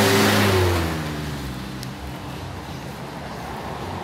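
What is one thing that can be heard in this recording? A truck engine rumbles close by and slowly winds down.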